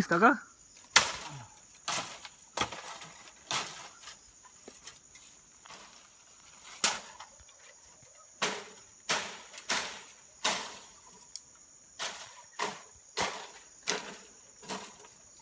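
A blade chops into bamboo with sharp, repeated knocks.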